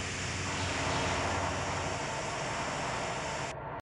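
Electric lightning crackles and buzzes.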